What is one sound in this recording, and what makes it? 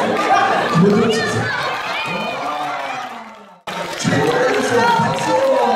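A crowd of children laughs and cheers.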